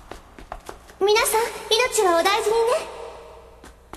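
A young woman calls out with feeling, close by.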